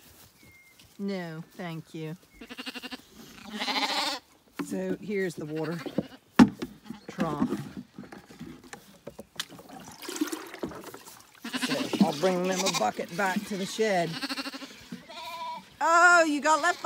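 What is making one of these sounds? A lamb bleats loudly, again and again, close by.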